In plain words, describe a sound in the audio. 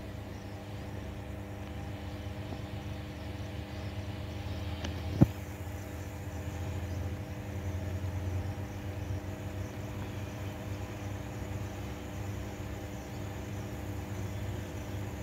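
A small paintbrush softly strokes across a metal surface.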